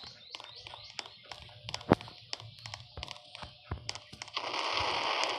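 Quick footsteps patter on pavement.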